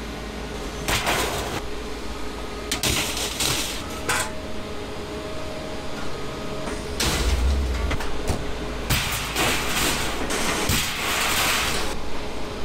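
Scrap metal clanks and rattles as a man climbs onto a load.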